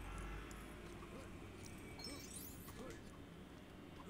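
Small coins jingle as they are picked up.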